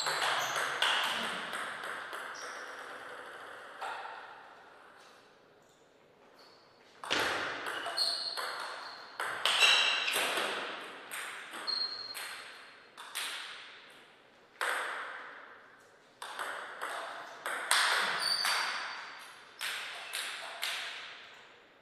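A ping-pong ball clicks back and forth, struck by paddles in an echoing hall.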